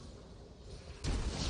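A loud magical burst crashes suddenly near the end.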